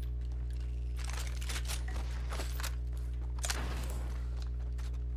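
A weapon clatters as it is handled.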